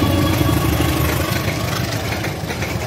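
A diesel locomotive rumbles past close by.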